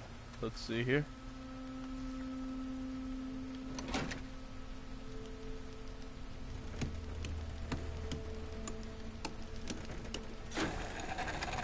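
A machine hums steadily as it is cranked.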